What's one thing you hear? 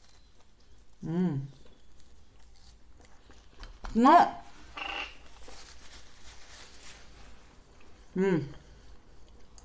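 A woman hums with pleasure between bites.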